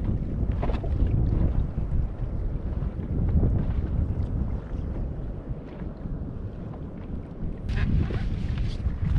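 Wind blows outdoors with a low rumble.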